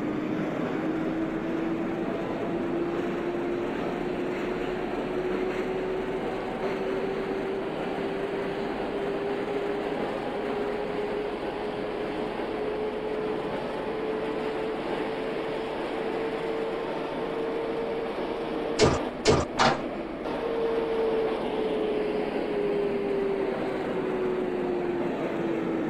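A subway train's motor hums and rumbles steadily, its pitch rising as it speeds up and falling as it slows.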